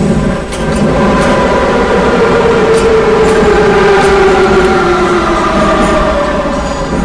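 Train motors whine, falling in pitch as the train slows.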